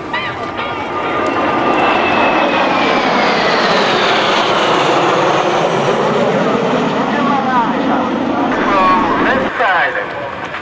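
Jet engines roar loudly overhead, the pitch sweeping down as they pass.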